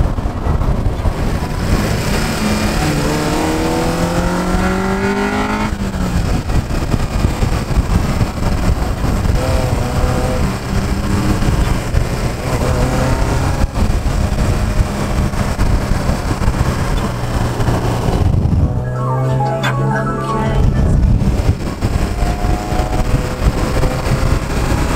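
A car engine hums and revs up between gear changes.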